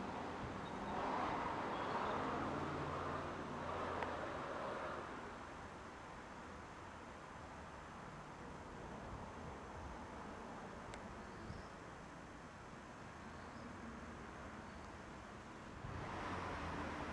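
Wind rustles the leaves of trees outdoors.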